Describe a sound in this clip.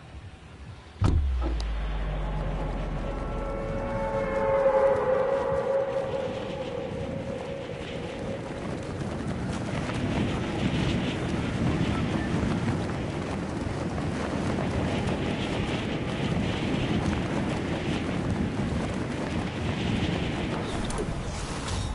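Wind rushes loudly and steadily past a falling skydiver.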